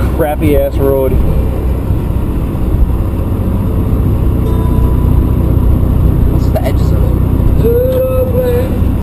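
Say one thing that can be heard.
A car engine hums steadily from inside the cabin.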